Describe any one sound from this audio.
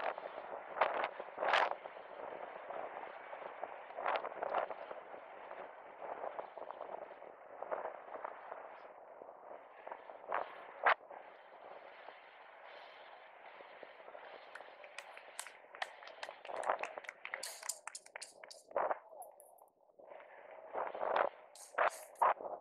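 Wind rushes and buffets loudly against a moving helmet.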